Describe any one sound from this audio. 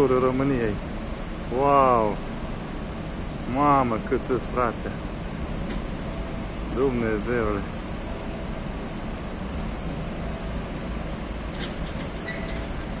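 Idling traffic rumbles steadily nearby.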